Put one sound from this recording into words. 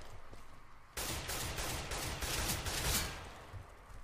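Footsteps tread quickly on hard ground.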